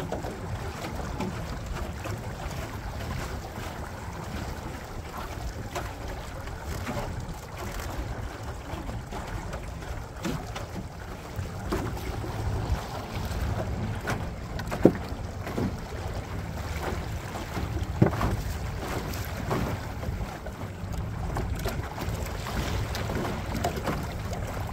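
Small waves lap and slap against a boat's hull.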